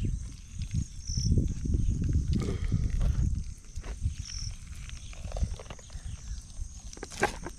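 Wet flesh squelches as a chicken is pulled apart by hand.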